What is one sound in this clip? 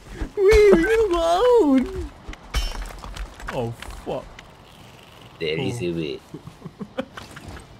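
A pickaxe strikes rock with sharp clinks.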